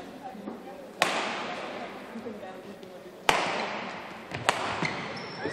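Shuttlecock hits ring out sharply from rackets in a large echoing hall.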